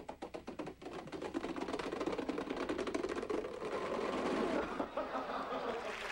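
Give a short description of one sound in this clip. Plastic dominoes clatter rapidly as they topple in a long chain.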